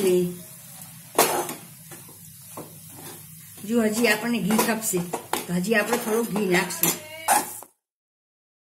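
A metal spoon scrapes and stirs against a metal pot.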